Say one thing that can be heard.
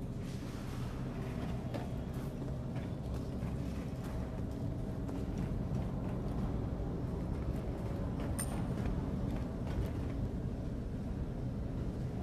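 A deep machine rumble drones steadily.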